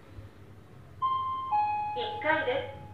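An elevator chime rings.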